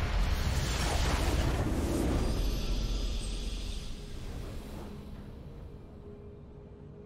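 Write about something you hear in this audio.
A game's victory fanfare swells loudly with a whooshing burst, then fades away.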